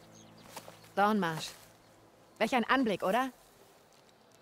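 A young woman speaks calmly and closely.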